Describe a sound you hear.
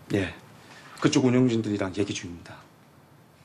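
A young man speaks in a low voice nearby.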